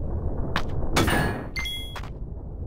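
A heavy weapon strikes a monster with a sharp whoosh and thud.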